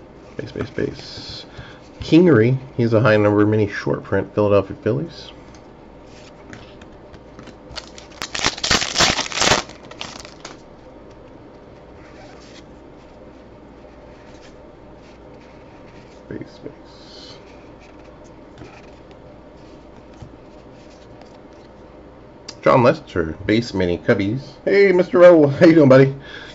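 Trading cards rustle and slide as they are flipped through by hand.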